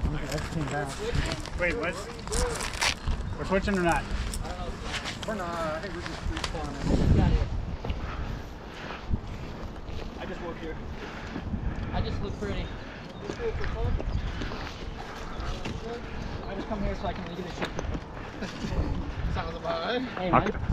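Men talk nearby in short, lively exchanges.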